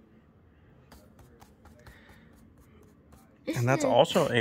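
Playing cards rustle and tap softly as they are handled.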